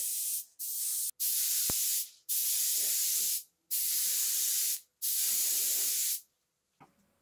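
An air spray gun hisses in short bursts.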